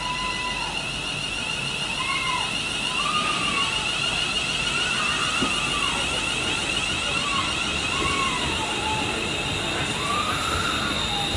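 A train rolls past steadily on the rails.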